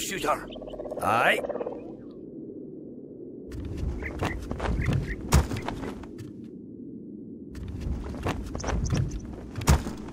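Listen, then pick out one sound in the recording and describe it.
Weapons clash and thud in a battle.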